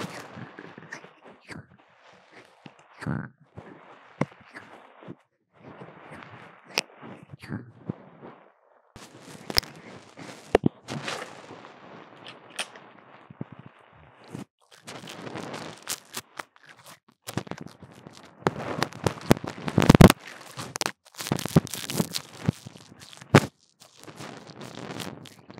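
A young woman talks quietly close by.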